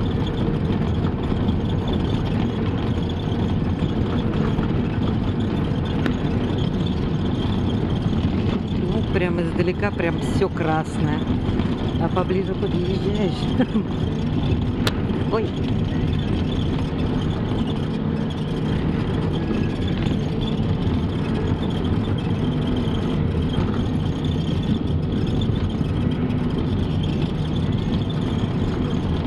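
A vehicle engine hums steadily with road rumble, heard from inside.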